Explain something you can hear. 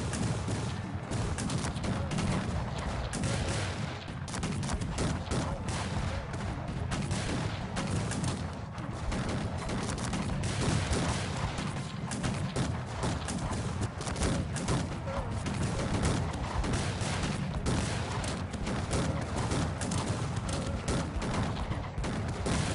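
A battle din of many soldiers rumbles steadily.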